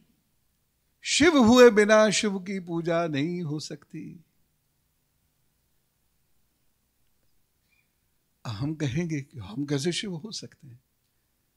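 A middle-aged man speaks with animation into a microphone, close by, pausing between phrases.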